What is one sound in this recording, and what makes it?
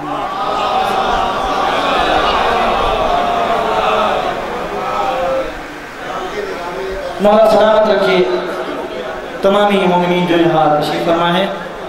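A young man recites melodically into a microphone, heard over loudspeakers.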